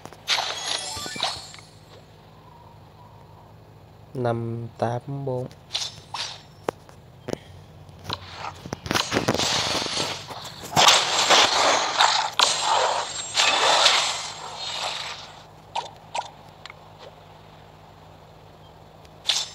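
Short clicks and chimes sound from game menus.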